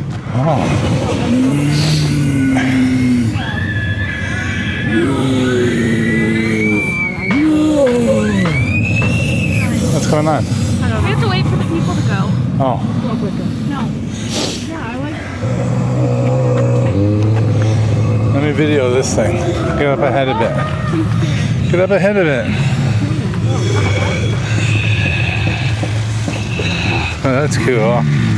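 Young people talk excitedly close by.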